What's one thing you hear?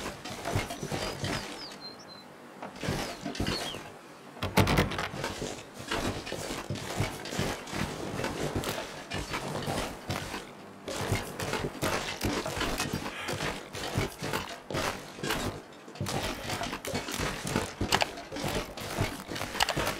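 Footsteps crunch on snow and ice.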